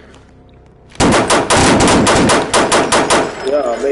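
A gun fires a rapid burst of shots.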